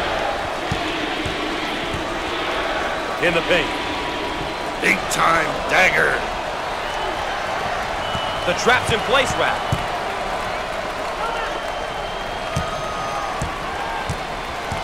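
A large crowd murmurs and cheers steadily in a big echoing hall.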